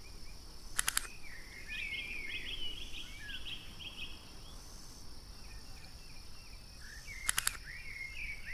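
Game chips click as they snap into new spots.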